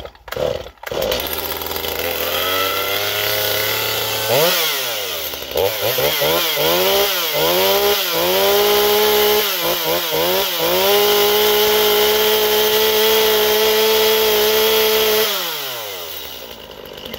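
A chainsaw engine starts, revs up and down, then winds down.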